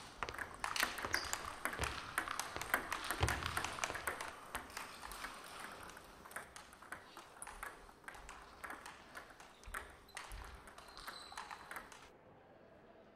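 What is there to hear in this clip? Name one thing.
Ping-pong balls click sharply on tables and paddles in a large echoing hall.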